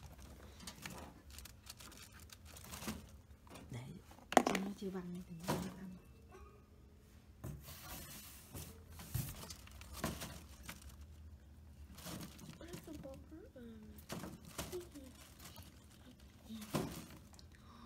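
A rabbit's paws patter and scrabble on a wire cage floor.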